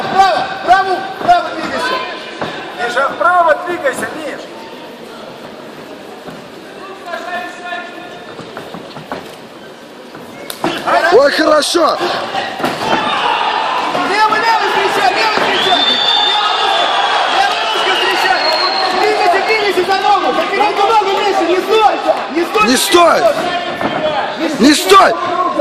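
Men shout loudly close by.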